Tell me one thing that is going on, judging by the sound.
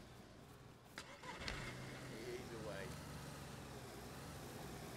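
A car engine runs and revs nearby.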